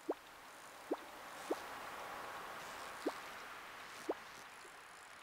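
Short rising electronic blips chirp from a video game, a few times.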